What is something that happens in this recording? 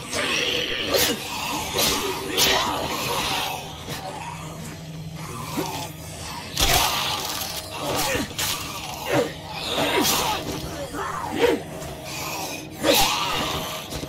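Heavy blows thud into bodies.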